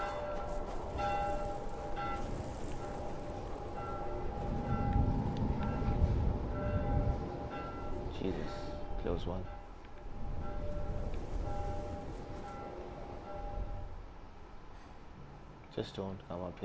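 Wind howls and gusts in a snowstorm.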